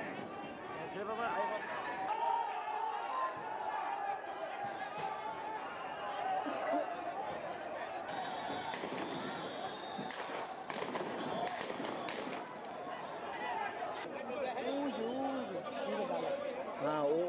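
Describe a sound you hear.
A crowd of men shouts and clamours outdoors.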